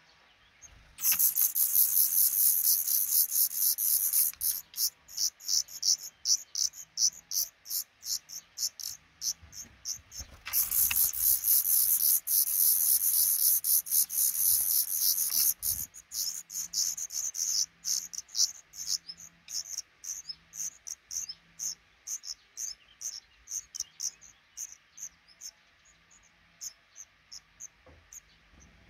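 Baby birds cheep shrilly and rapidly in a nest, then peep more softly.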